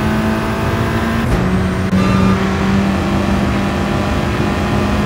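A race car engine roars at high revs.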